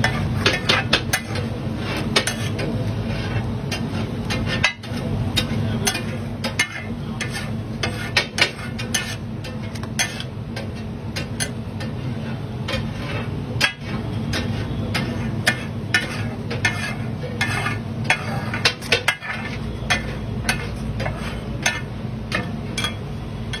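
Food sizzles on a griddle.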